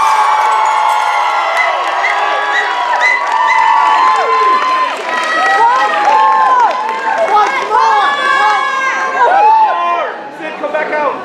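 A group of young people sings together on a stage.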